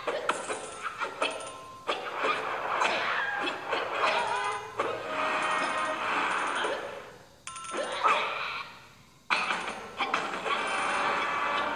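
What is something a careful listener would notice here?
Music and jingly sound effects play from a tablet game.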